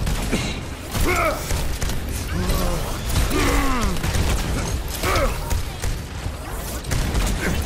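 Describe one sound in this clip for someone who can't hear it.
A video game weapon fires in rapid bursts.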